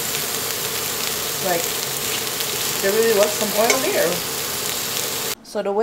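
Food sizzles steadily in hot oil in a frying pan.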